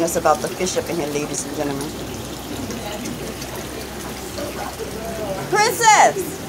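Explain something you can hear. Water splashes steadily from a hose into a pond.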